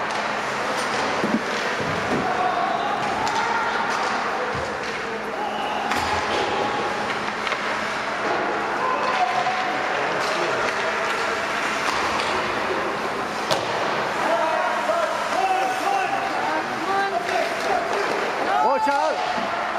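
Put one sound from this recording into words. A crowd of spectators chatters nearby.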